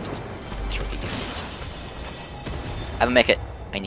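A treasure chest opens with a bright shimmering chime.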